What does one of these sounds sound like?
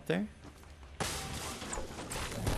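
Wooden walls snap into place with quick thuds.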